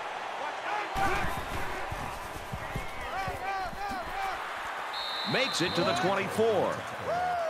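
Football players' pads thud together in a tackle.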